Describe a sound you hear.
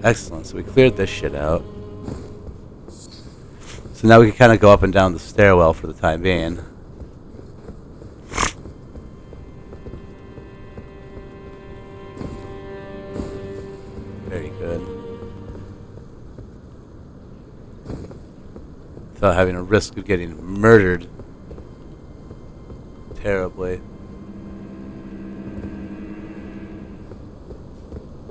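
Armoured footsteps run over stone and grass.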